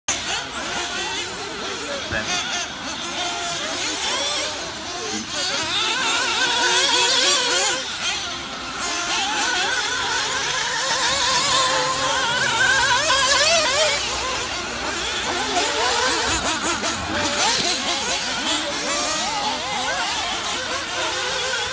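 Tyres of small cars scrape and crunch on dirt.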